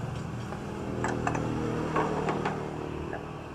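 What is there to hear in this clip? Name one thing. Ceramic plates clink as they are set down on a wooden table.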